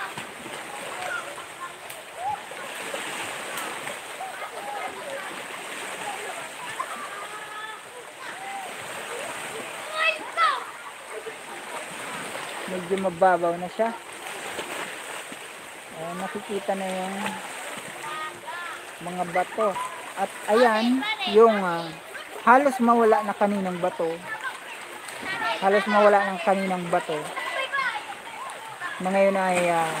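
Gentle waves lap against rocks on a shore.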